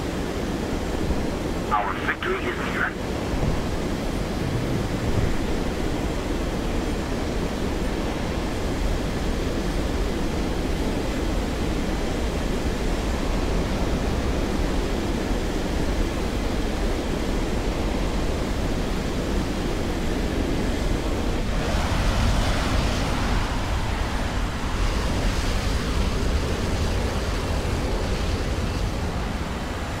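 A jet engine roars steadily with an afterburner.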